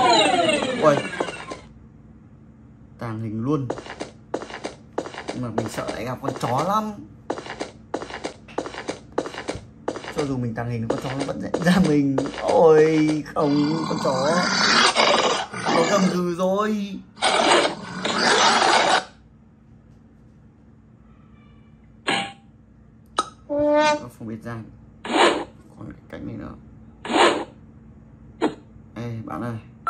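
Cartoon game sound effects play from a small tablet speaker.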